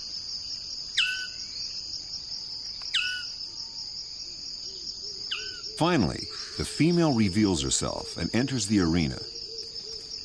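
A bird gives loud, harsh, rapidly repeated calls nearby.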